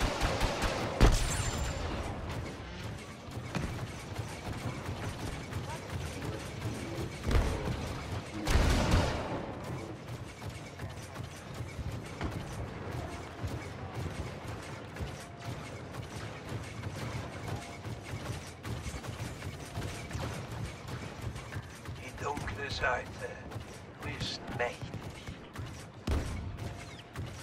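Loud explosions boom.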